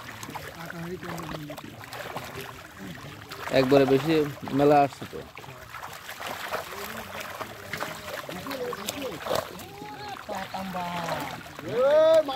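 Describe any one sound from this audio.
Fish thrash and splash in a net in shallow water.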